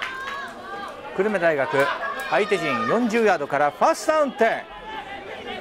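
A crowd of spectators cheers and chants in the distance.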